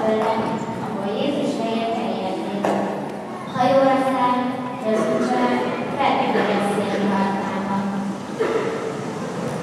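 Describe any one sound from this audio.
Children sing together through a microphone in a large echoing hall.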